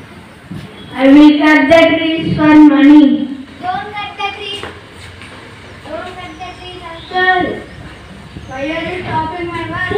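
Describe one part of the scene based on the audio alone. A second boy answers into a microphone through a loudspeaker with animation.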